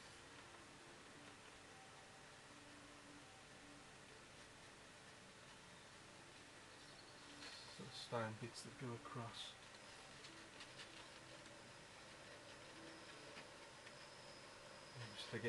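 A brush dabs and scratches softly on paper.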